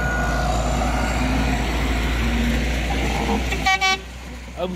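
A grader's diesel engine rumbles loudly close by.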